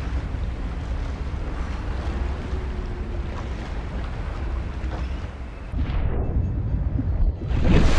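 A deep underwater rumble churns steadily.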